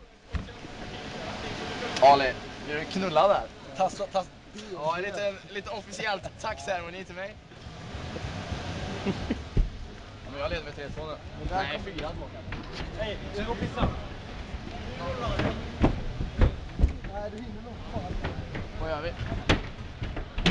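Young men talk and laugh close by with animation.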